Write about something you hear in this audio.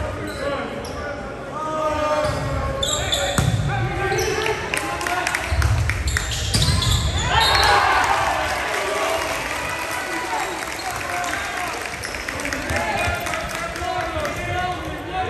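Young men shout and call out to each other across a large echoing gym.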